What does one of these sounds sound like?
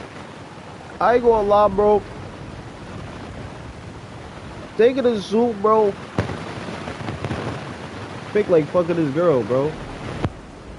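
A young man speaks casually into a microphone in short bursts.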